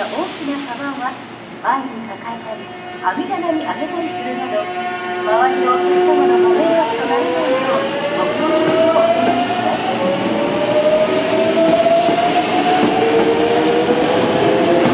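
A train rolls slowly along the tracks.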